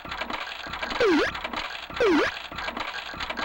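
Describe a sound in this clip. Two loud electronic sweeps sound as spinning reels stop.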